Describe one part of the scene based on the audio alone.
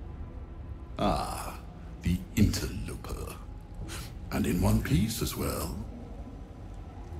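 An older man speaks slowly in a deep, menacing voice.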